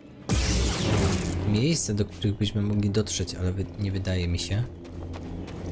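A lightsaber hums and clashes with loud buzzing strikes.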